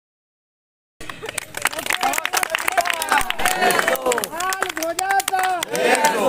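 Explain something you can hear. A group of men clap their hands.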